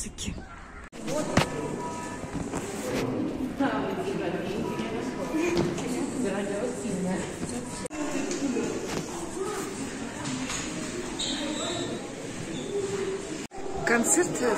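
Voices murmur and chatter in an echoing hall.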